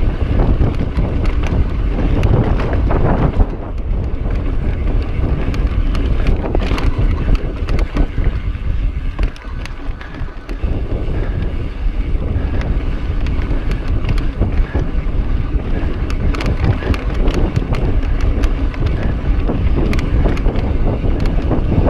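A bike's chain and frame rattle over bumps.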